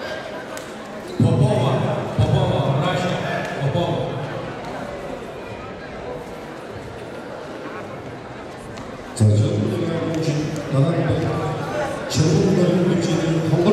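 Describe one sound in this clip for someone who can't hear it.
Bare feet shuffle and stamp on a mat.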